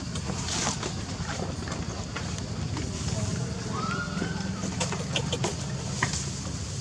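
Dry leaves and gravel rustle under moving monkeys.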